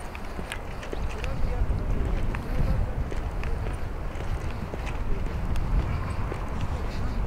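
Wind buffets loudly outdoors, growing stronger.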